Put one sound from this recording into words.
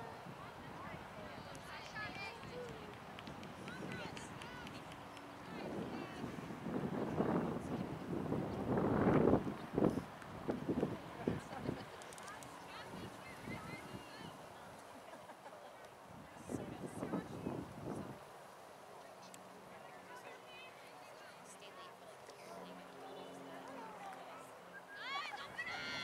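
Young girls shout and call out across an open field in the distance.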